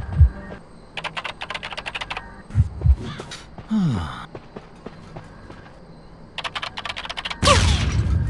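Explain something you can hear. A machine clatters with quick, rapid clicks.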